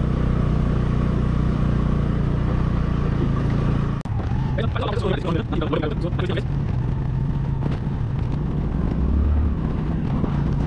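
A motorbike engine rumbles steadily.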